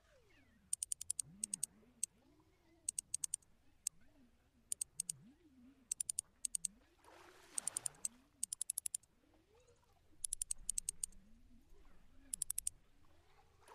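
A fishing reel clicks in quick bursts as line is wound in.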